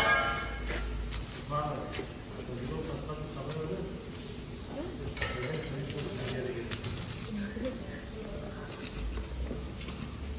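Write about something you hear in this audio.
A hide rips and tears wetly as it is pulled away from a carcass.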